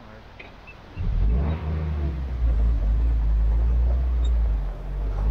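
A jeep engine starts up and rumbles steadily.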